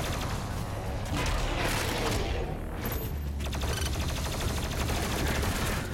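Heavy gunfire blasts rapidly.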